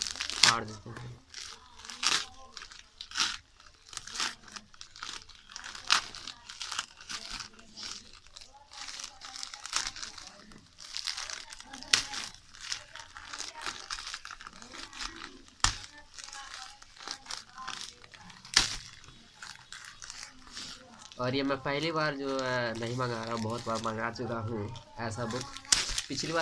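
Plastic wrapping crinkles and rustles as it is torn open by hand.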